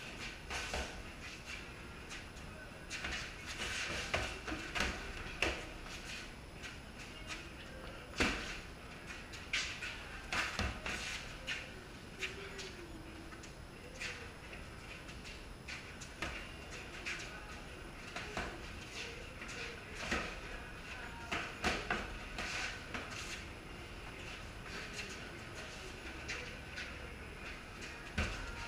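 Sneakers scuff and squeak on a concrete floor.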